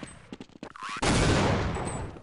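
A sniper rifle fires a sharp shot.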